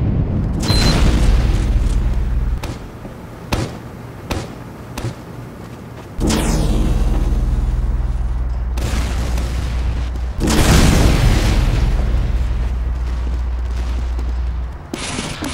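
A weapon hums with a low, steady drone.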